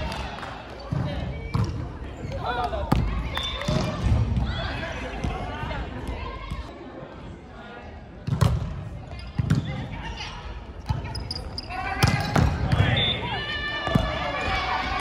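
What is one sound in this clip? A volleyball thuds against hands and arms.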